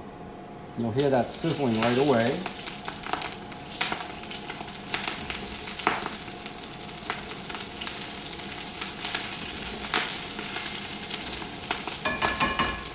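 Vegetables sizzle loudly in a hot pan.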